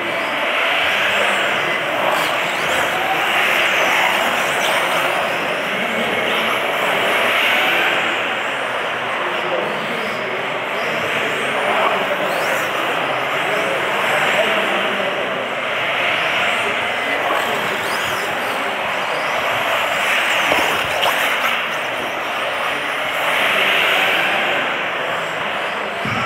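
Plastic tyres hiss and skid on a smooth floor.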